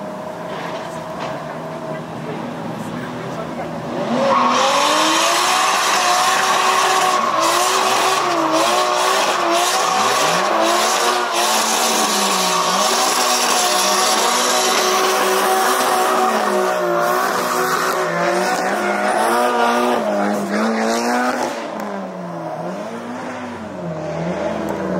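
Car engines rev hard and bounce up and down in pitch close by.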